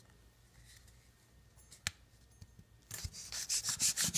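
A plastic lid rattles and scrapes under a hand.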